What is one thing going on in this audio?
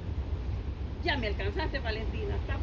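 A young girl talks in a high voice close by.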